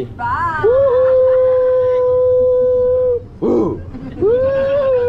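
A group of people sing together close by, holding long drawn-out notes.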